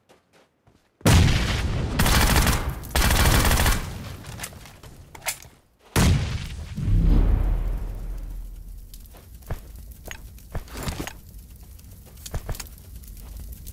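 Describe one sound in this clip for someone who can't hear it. A burning truck roars and crackles with fire.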